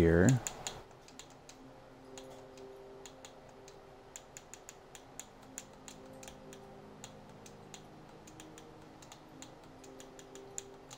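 Soft, quick clicks sound now and then.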